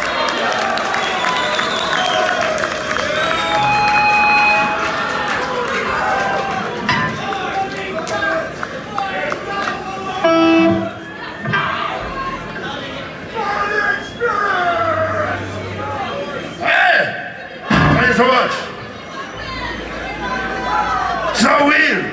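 A crowd talks and shouts in a loud echoing room.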